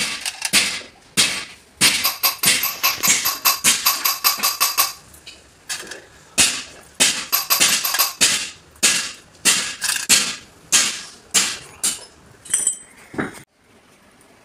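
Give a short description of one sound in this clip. Metal tools strike and tap on a metal engine part, ringing sharply.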